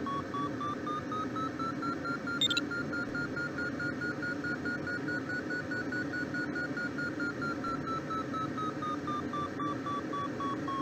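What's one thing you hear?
Wind rushes steadily past a glider.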